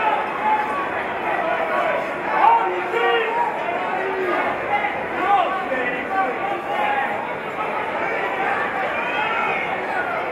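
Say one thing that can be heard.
A crowd of spectators chatters and shouts in a large hall.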